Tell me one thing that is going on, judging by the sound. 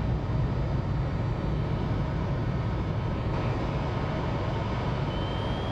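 An underwater craft runs with a low rumbling whir.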